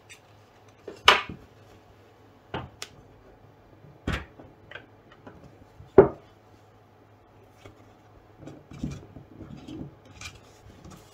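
A plastic hoop knocks and clicks as it is handled and pressed together.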